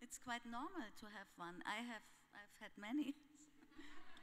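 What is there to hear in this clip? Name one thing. A woman speaks into a microphone with animation.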